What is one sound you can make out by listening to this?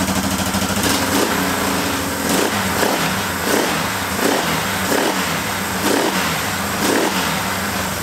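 A motorcycle engine is kicked over repeatedly with a clunking crank.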